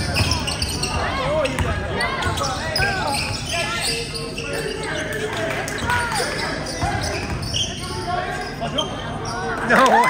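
Young players and spectators call out in a large echoing gym.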